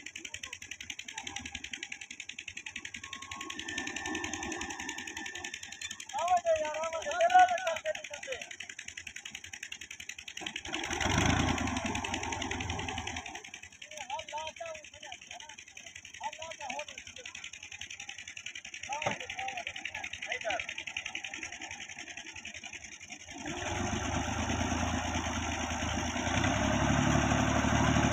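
A tractor engine runs and rumbles steadily, revving up near the end.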